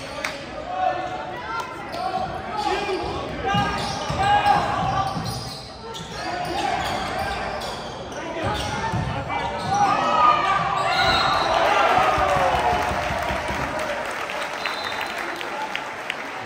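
Sneakers squeak on the wooden court.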